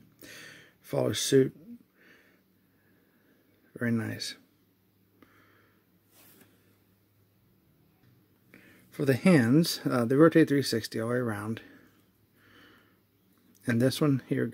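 Plastic joints click softly as a small action figure is handled and posed.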